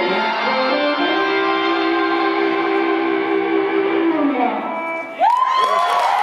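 An electric guitar plays a sustained, buzzing chord through an amplifier.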